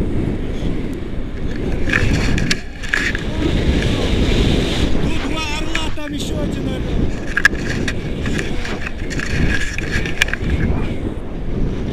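Wind buffets the microphone during a paraglider flight.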